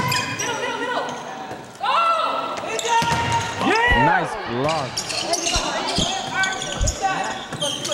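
A volleyball is struck with hard thumps.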